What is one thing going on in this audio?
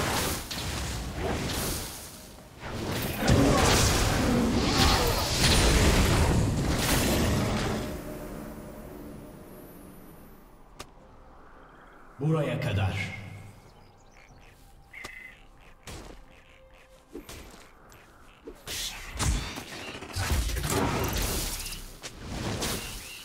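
Magic spells whoosh and crackle in a fast video game fight.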